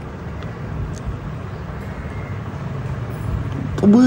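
A spoon scrapes cream off a cookie on a plate.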